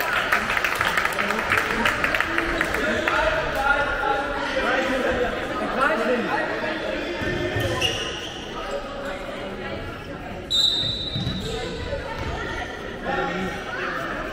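Sports shoes squeak on a wooden floor in an echoing hall.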